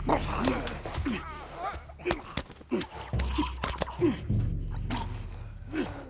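Two bodies grapple and thud against each other.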